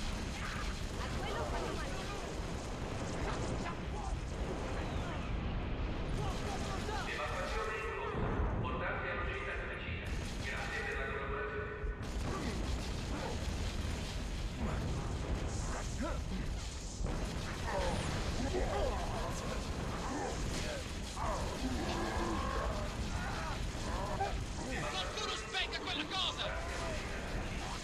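A video game's energy weapon fires in rapid bursts.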